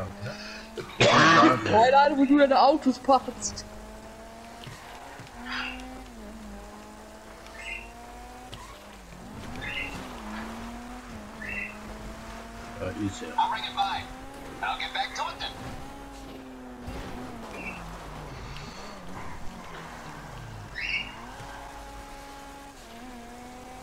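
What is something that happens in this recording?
A car engine hums and revs as the car drives.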